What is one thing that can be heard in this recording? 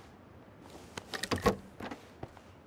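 A wooden door swings open with a creak.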